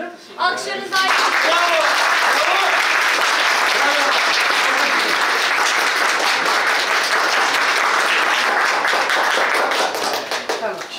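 A crowd applauds loudly and cheers.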